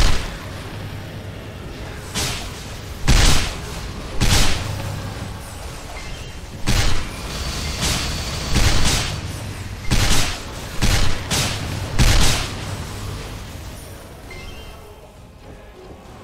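Game background music plays steadily.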